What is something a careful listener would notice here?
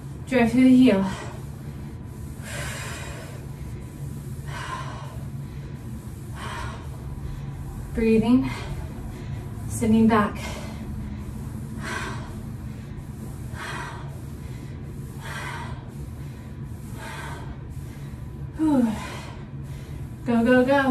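A woman breathes hard in a steady rhythm.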